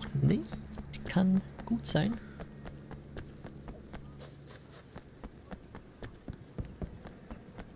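Footsteps run quickly on hard stone.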